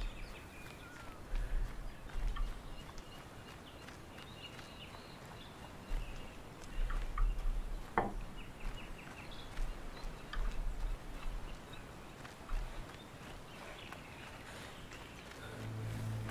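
Footsteps crunch over dry grass and dirt.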